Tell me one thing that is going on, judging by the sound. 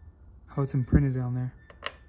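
A small metal piece clicks down on a wooden table.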